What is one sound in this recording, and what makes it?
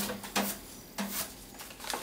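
A wire brush scratches briefly across metal.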